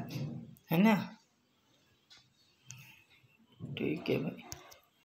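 An elderly woman speaks calmly and close to the microphone, with pauses.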